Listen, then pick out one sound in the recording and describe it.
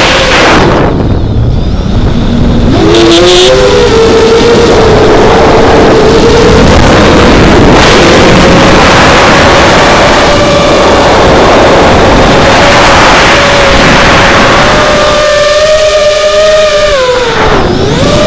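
Wind rushes past.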